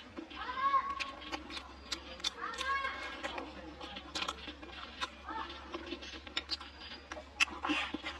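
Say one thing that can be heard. A young woman chews food noisily up close.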